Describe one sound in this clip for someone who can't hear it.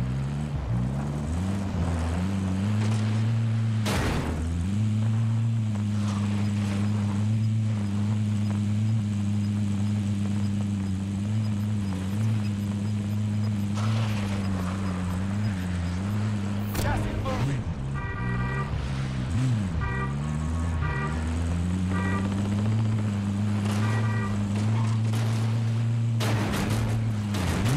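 A vehicle engine hums steadily and revs as the vehicle drives over rough ground.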